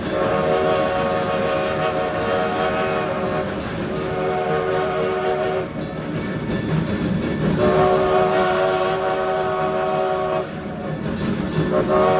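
A steam locomotive hisses and chuffs steadily close by.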